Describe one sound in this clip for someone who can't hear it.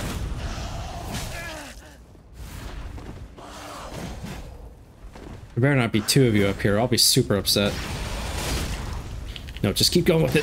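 Flames roar and whoosh from a burning sword.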